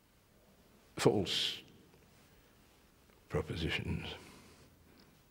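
An elderly man speaks in a low, slow voice close by.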